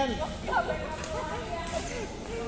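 A badminton racket strikes a shuttlecock with a sharp pop in a large echoing hall.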